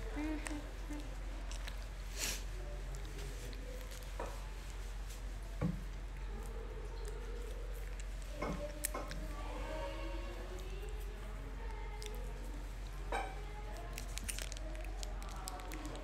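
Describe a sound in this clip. Crisp lettuce crunches as a young woman bites and chews.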